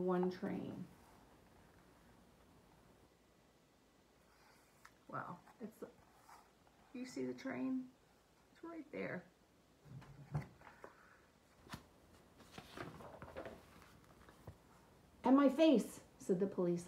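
A middle-aged woman reads aloud expressively, close by.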